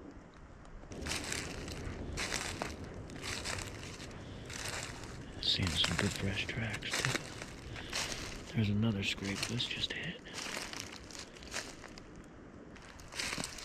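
Footsteps crunch through dry leaves at a steady walking pace.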